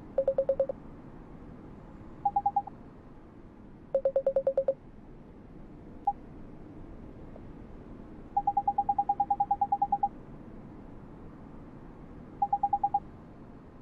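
Short electronic blips chatter in quick bursts, low-pitched and then higher-pitched.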